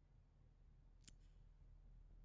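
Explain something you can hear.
A soft interface click sounds once.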